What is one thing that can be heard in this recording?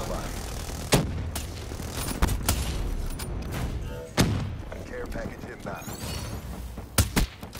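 Rifle shots crack sharply, a few times.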